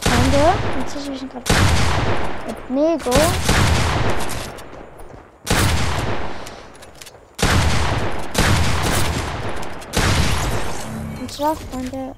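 Loud shotgun blasts boom with long ringing tails.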